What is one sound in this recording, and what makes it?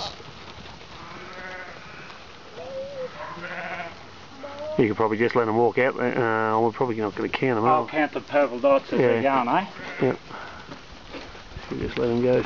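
Sheep bleat loudly, many voices at once.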